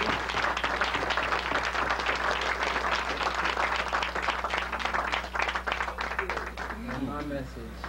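A crowd claps and cheers loudly in a room.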